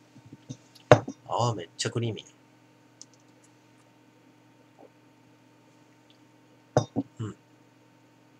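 A glass knocks down onto a wooden table.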